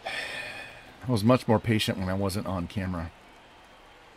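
A middle-aged man speaks briefly and with animation close to a microphone.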